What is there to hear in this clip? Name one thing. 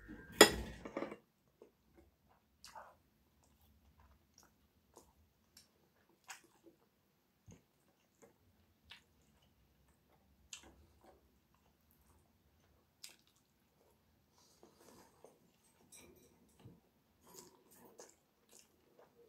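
A middle-aged woman chews food with soft smacking sounds close by.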